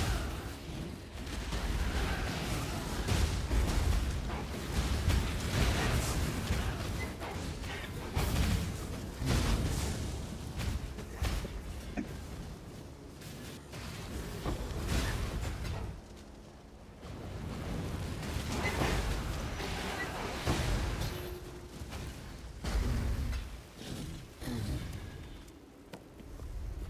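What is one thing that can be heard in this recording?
Spells crackle and explode in rapid bursts.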